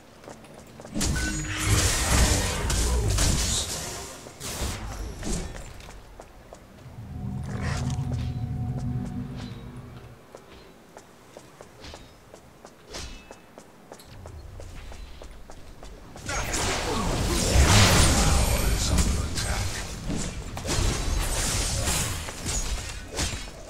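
Magical blasts whoosh and crackle in bursts.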